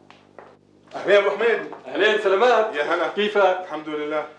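Two men talk warmly.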